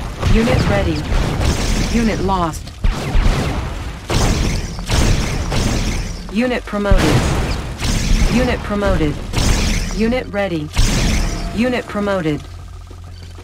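Explosions boom again and again in a battle.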